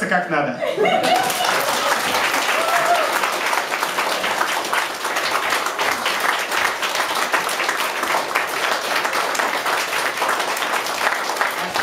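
An audience claps and cheers loudly.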